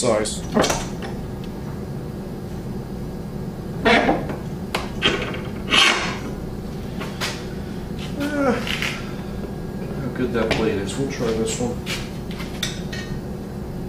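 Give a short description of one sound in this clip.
A metal vise handle clanks and knocks as a vise is tightened.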